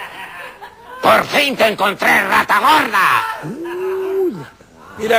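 A speaker answers loudly and expressively into a microphone.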